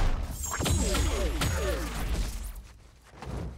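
Energy blasts fire with sharp zaps and bursts.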